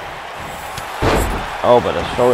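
A heavy body slams onto a wrestling mat with a loud thud.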